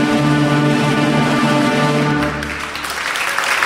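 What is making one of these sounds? An orchestra plays a loud, sustained chord in a large echoing hall.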